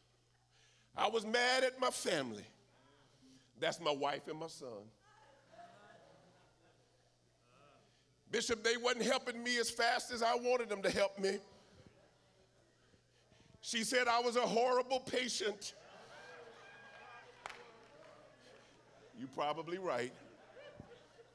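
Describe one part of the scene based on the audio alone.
A man preaches with passion into a microphone, his voice ringing through a large echoing hall, in loud bursts with pauses.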